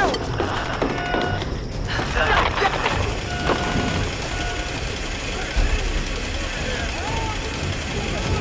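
A rope creaks and hums as a person slides down it.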